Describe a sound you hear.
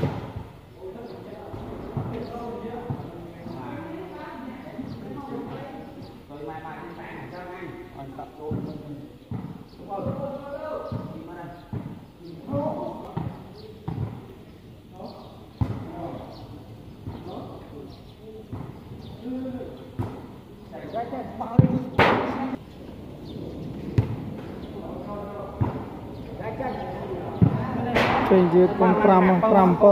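A crowd of men chatters and calls out in a large echoing hall.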